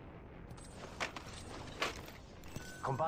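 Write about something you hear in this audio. Short metallic clicks sound as ammunition is picked up.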